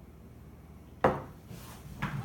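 A glass is set down on a wooden table with a knock.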